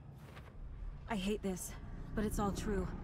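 A woman speaks quietly and calmly, close by.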